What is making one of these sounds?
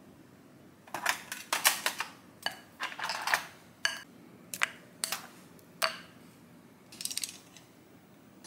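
Ice cubes clink and clatter into a glass bowl.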